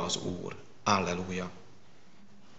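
A man speaks through a microphone in an echoing room.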